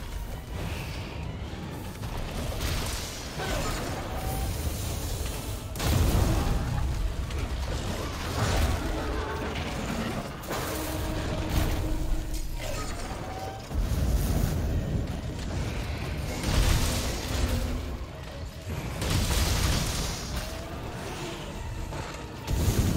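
A heavy blade strikes and slashes repeatedly.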